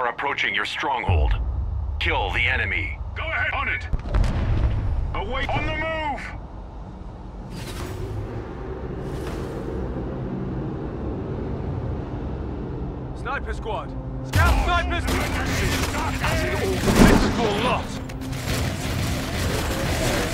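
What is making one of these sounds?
Gunfire and explosions clatter in a game battle.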